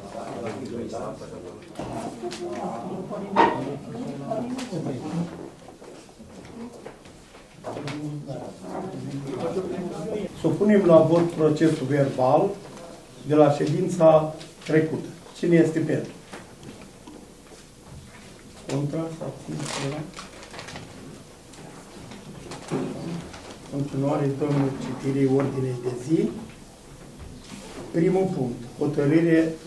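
An elderly man reads aloud into a microphone.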